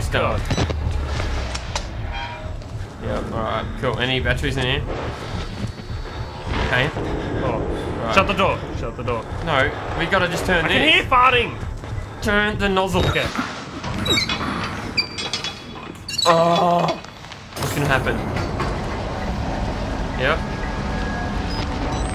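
Two young men talk with animation through headset microphones.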